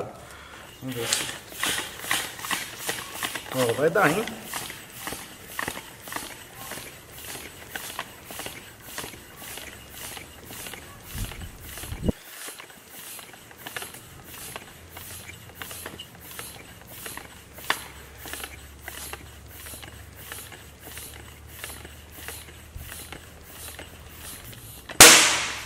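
A floor pump hisses with quick, rhythmic strokes as air goes into a bicycle tyre.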